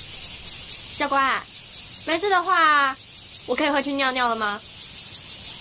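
A young woman asks a question politely.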